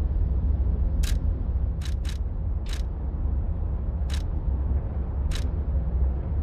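Short soft clicks sound as menu choices change.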